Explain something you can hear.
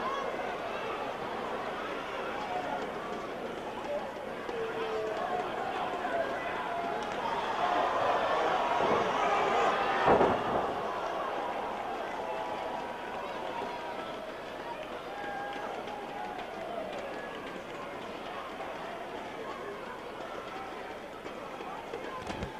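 A crowd cheers and shouts throughout, swelling loudly just before the slam.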